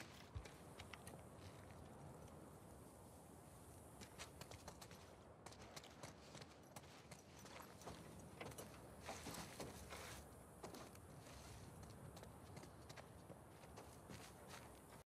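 Footsteps tread steadily on wood, metal and debris.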